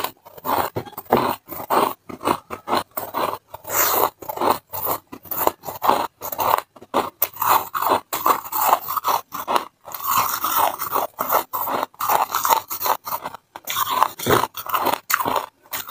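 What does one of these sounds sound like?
Ice scrapes and rustles as a hand grabs it.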